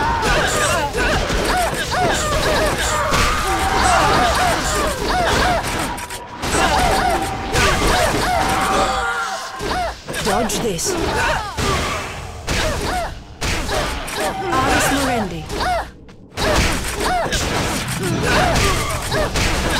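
Magic spells crackle and burst during a fantasy battle.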